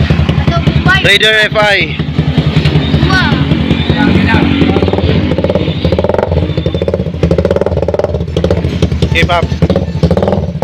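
A motorcycle engine revs up sharply a few times.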